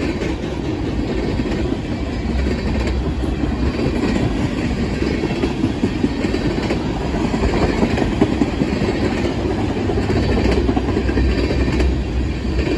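Steel wheels clack over rail joints.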